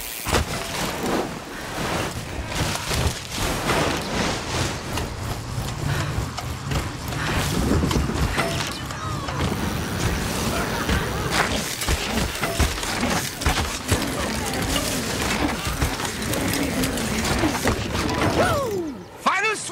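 Bike tyres rumble and crunch over rough dirt and snow at speed.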